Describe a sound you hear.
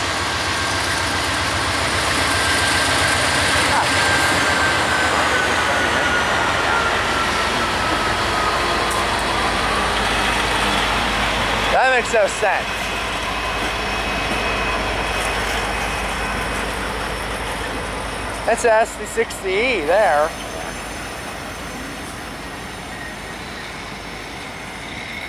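A freight train rumbles steadily past nearby, outdoors.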